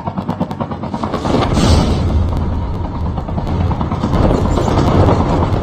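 An engine roars loudly close by.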